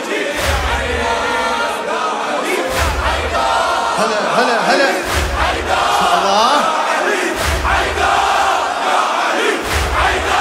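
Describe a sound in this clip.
A crowd beats their chests in a slow, steady rhythm.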